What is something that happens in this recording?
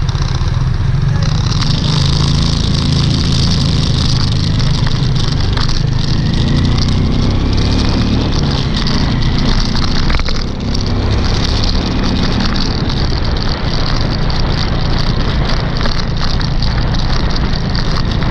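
Other motorbikes buzz past nearby.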